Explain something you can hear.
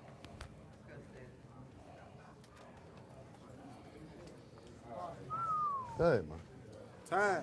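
A crowd of men murmurs and chatters.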